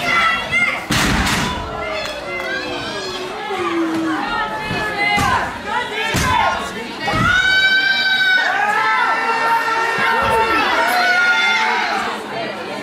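A crowd shouts and chants loudly in a large echoing hall.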